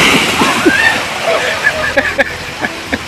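Water splashes in a pool as riders land.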